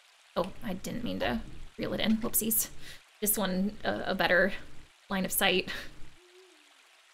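A young woman talks with animation into a close microphone.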